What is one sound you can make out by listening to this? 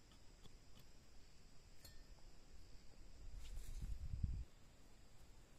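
A hoe scrapes and chops into dry soil.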